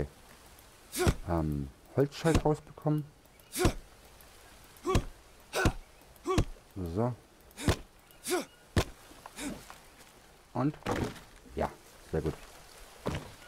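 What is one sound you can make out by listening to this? A stone blade chops at plant stalks with sharp thuds.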